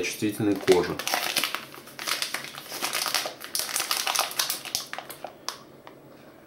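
A plastic wrapper crinkles as hands turn a pack of wipes.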